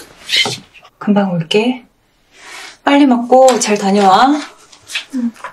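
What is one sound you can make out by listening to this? A woman speaks warmly and gently up close.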